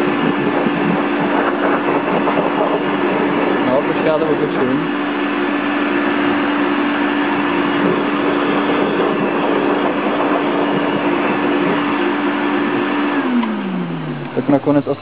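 An electric air blower hums loudly and steadily, then winds down.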